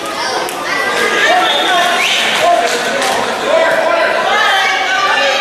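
Children shout and call out excitedly in a large echoing gym.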